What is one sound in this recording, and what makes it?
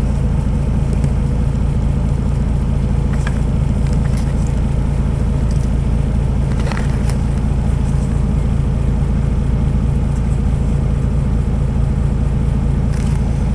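A vehicle engine idles with a steady low rumble.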